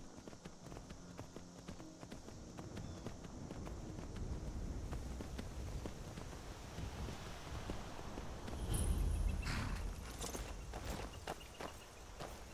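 Horse hooves clop steadily on stony ground.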